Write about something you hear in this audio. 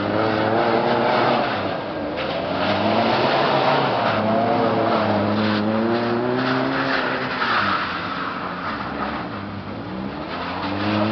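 A car engine revs up and down close by.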